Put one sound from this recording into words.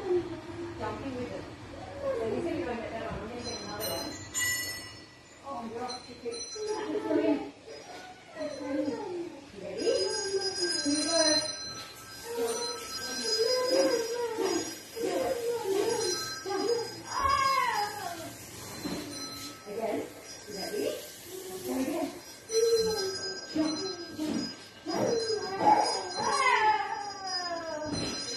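A child talks and calls out excitedly outdoors.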